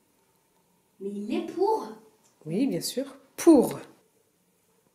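A young child speaks nearby.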